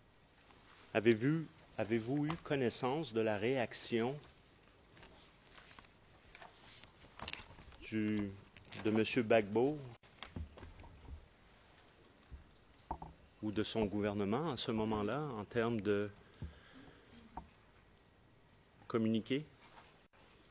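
A middle-aged man speaks formally into a microphone, in bursts with pauses.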